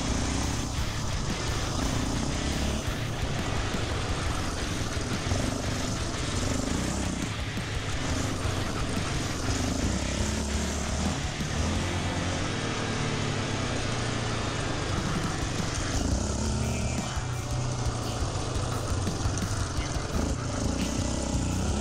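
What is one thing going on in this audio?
Tyres rumble over a bumpy dirt track.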